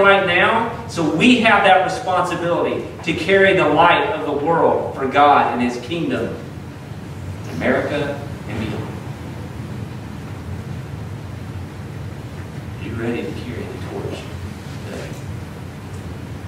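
A man speaks with animation through a microphone in a room with some echo.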